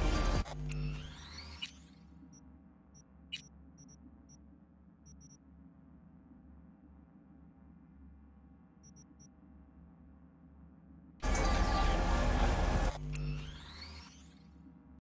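A whooshing electronic rush swells and fades.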